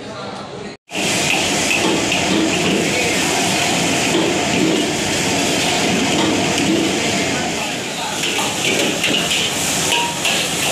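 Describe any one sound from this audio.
A gas burner roars under a wok.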